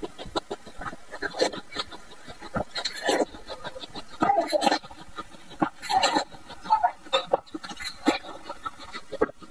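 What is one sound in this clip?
A woman chews loudly with wet, crunchy sounds.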